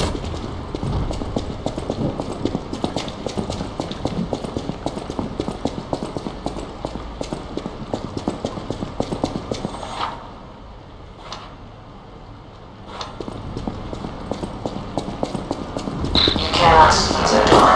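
Quick footsteps tap on a hard stone floor.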